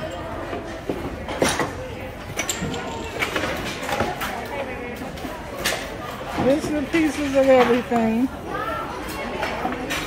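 Wooden boards knock and clatter against each other.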